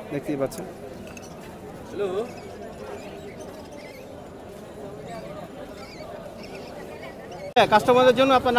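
Baby parrots chirp and squeak softly, begging for food.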